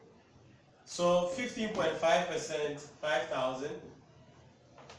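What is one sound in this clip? A man speaks loudly and clearly, as if teaching a class.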